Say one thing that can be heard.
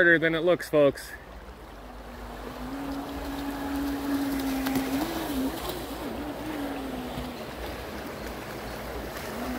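A shallow river ripples over stones.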